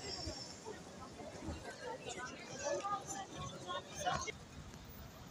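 Men and women chatter in a crowd nearby.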